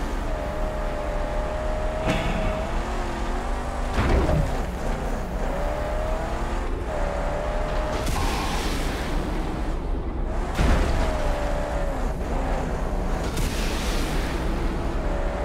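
A car engine roars steadily, its pitch rising and falling as it revs.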